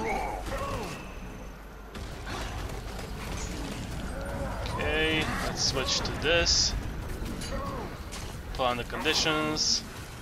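Magic blasts whoosh and crackle during a fight.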